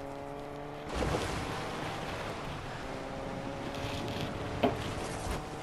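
Water splashes and sprays under a car.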